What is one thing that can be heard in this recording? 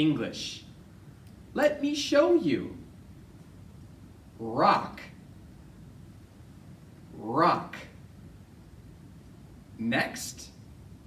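A man speaks clearly and with animation into a microphone, in short bursts.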